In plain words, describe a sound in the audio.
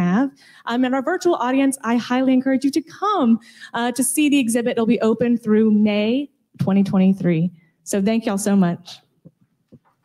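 A woman speaks with animation through a microphone in a large room.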